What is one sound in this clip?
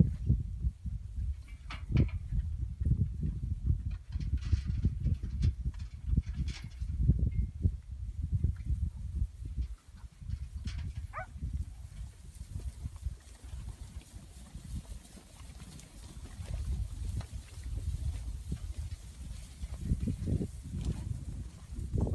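Wind blows steadily across open ground outdoors.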